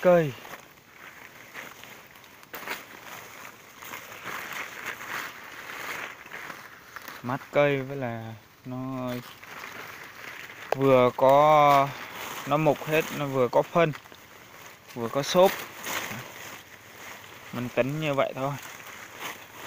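Leaves and branches rustle close by.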